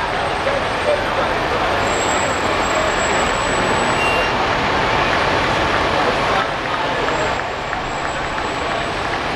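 Fire engines rumble slowly along the street.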